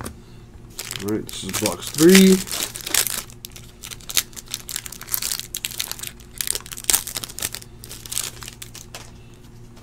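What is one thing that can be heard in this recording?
A plastic sleeve crinkles as it is handled.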